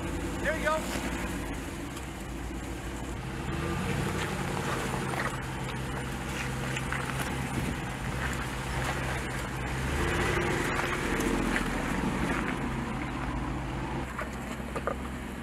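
An off-road vehicle's engine rumbles steadily at low speed.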